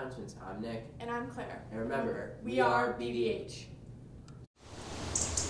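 A teenage girl speaks calmly and clearly into a microphone.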